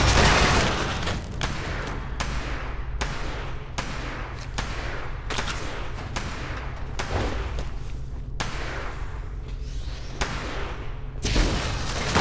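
Footsteps thud at an even pace.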